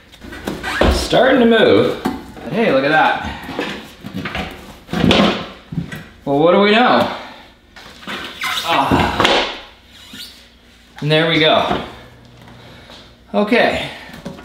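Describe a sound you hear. A rubber tyre thumps and scrapes as it is pulled off a wheel.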